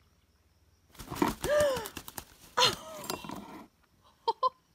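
A hen flaps its wings.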